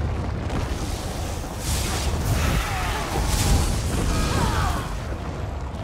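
Spells and blows clash in a fight.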